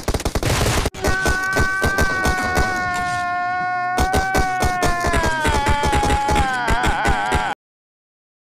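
A man cries out loudly with anguish.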